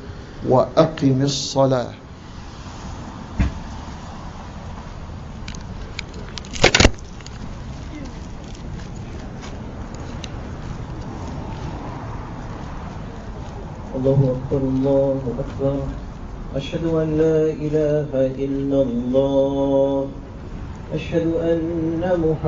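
A man speaks slowly into a microphone, heard through a loudspeaker.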